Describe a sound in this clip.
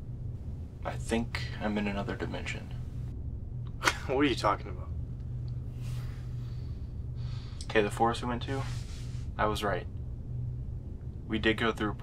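A second young man speaks softly and close by, in short bursts.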